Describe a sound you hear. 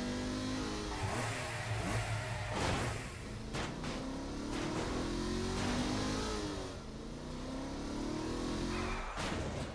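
A car engine revs and whines, rising and falling as it shifts gears.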